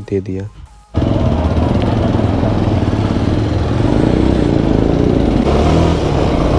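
A motorcycle engine hums steadily as it rides.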